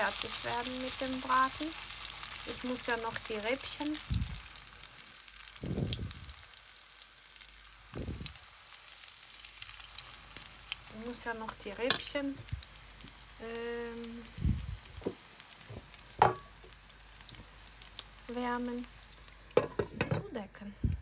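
Hot oil sizzles steadily in a frying pan.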